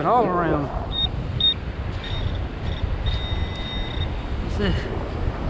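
A metal detector pinpointer probe beeps in the sand.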